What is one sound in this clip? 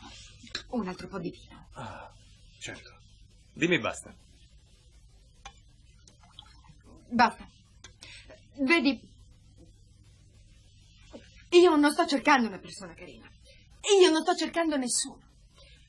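A woman speaks quietly and intently up close.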